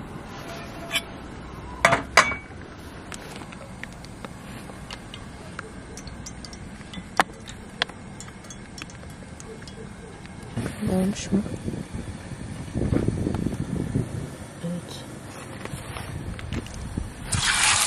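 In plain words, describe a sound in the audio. A gas burner hisses softly and steadily.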